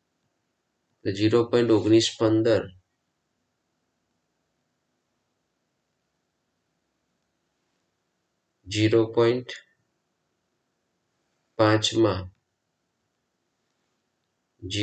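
A man speaks calmly and closely into a microphone, in short bursts with long pauses.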